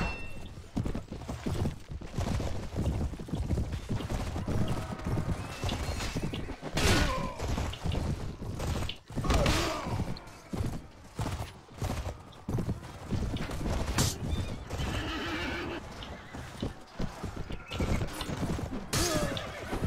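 Men shout and cry out in battle.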